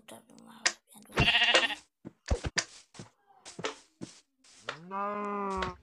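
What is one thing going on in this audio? A sheep bleats.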